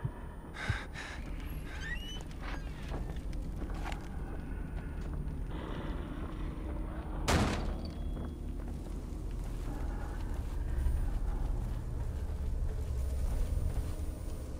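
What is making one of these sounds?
A low, steady rumble drones throughout.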